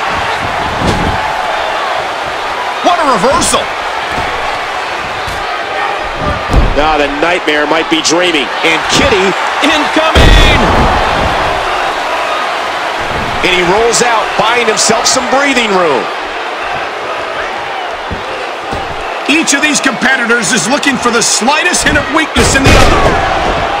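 Heavy thuds ring out as bodies slam onto the wrestling mat.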